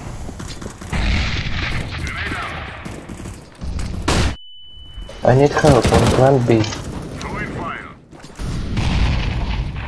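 Gunshots crack in quick bursts nearby.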